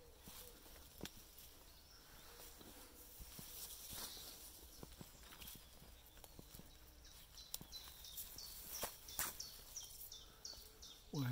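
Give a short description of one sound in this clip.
Footsteps crunch softly on a dirt path with dry twigs.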